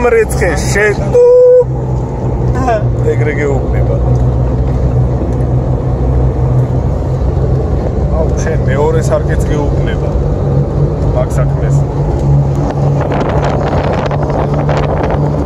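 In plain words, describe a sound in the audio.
Tyres rumble over a dirt road.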